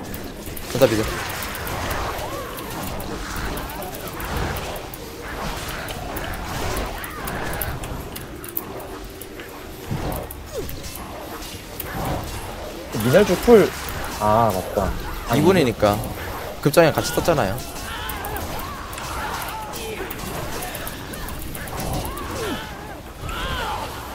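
Game spell effects and weapon strikes crackle and clash throughout a battle.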